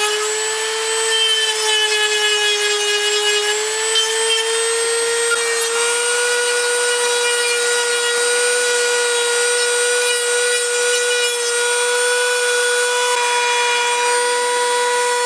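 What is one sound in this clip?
A small rotary tool whines steadily at high speed, close by.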